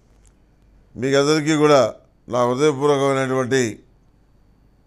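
An elderly man chants slowly in a drawn-out voice, close by.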